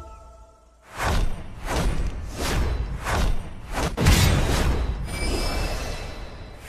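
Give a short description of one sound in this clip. Quick bright chimes ring out in a rapid series as the level counts up.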